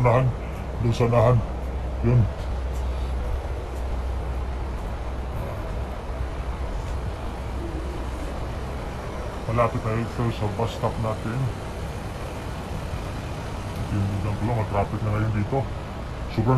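Slow city traffic rumbles along a street outdoors.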